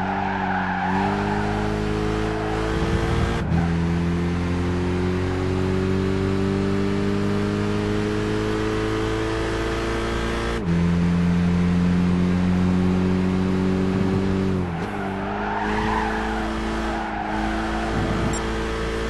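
A racing car engine roars and climbs in pitch, dropping briefly at each gear change.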